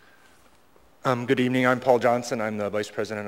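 An older man speaks into a microphone.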